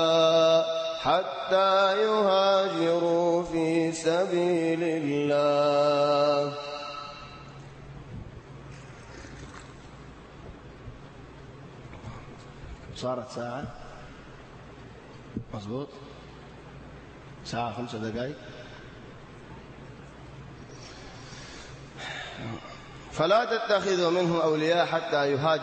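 A young man chants in a long, melodic voice through a microphone with echo.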